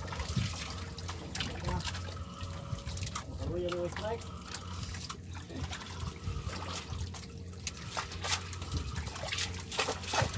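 Water laps and splashes against a boat's hull.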